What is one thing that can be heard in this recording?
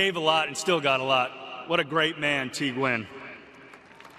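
A middle-aged man speaks with emotion into a microphone, his voice echoing over loudspeakers.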